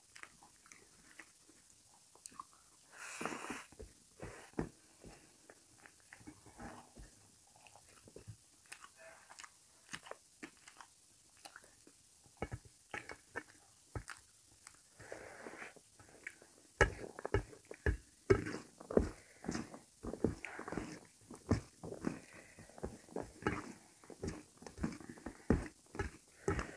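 Fingers squelch and scrape through rice on a metal plate.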